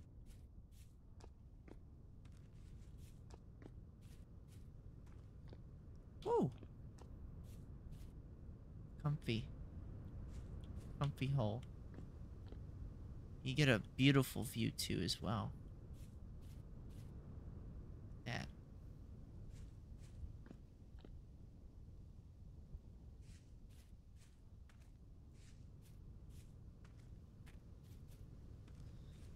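Footsteps tread softly over grass and stone.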